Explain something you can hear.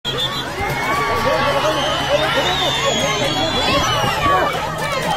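A crowd of women shout and chant loudly close by.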